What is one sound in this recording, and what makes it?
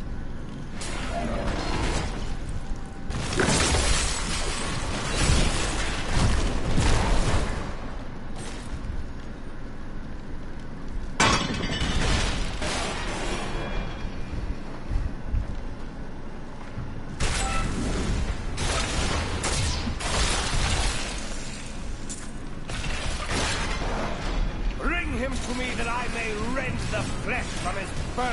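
Swords clash in a fast, noisy fight.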